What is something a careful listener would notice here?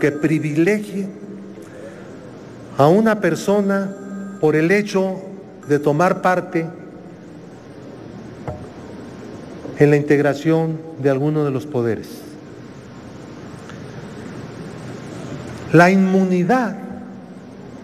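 An elderly man speaks forcefully into a microphone in a large echoing hall, with long pauses.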